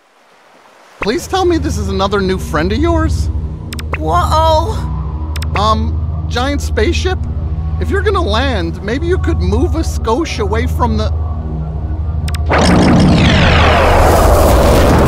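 A huge spaceship hovers overhead with a deep, steady rumble.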